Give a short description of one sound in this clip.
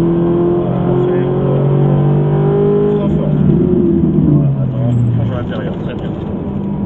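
A car engine roars loudly from inside the cabin, shifting gears as it accelerates.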